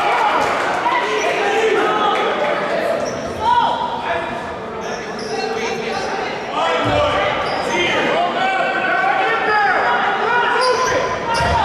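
Young players and spectators call out and chatter.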